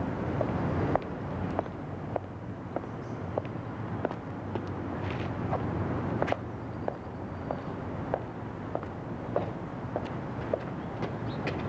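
Footsteps of a man walk steadily away on pavement.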